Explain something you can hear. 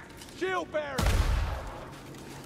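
A rifle fires a loud shot that booms and rings out.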